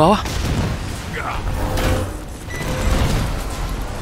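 Loud energy blasts crackle and boom.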